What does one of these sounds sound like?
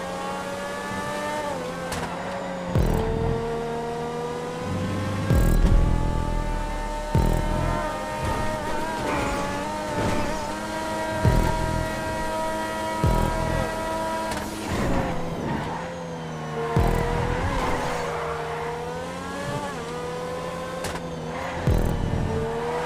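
A racing car engine roars at high revs, dipping and climbing as the gears change.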